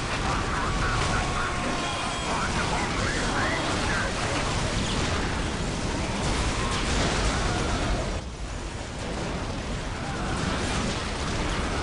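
Guns fire rapidly in a noisy battle.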